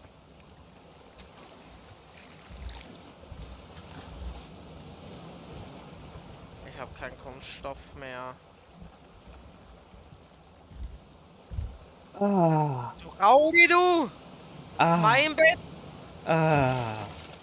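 Gentle waves lap softly in the background.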